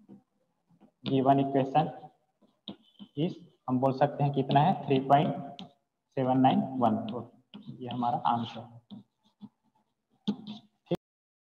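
A young man explains calmly and clearly, close by.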